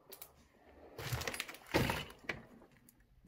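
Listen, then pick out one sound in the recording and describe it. A metal door push bar clanks as a door is pushed open.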